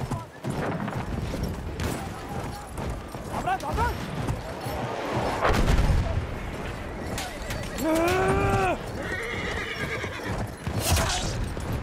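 Explosions and gunfire boom in the distance.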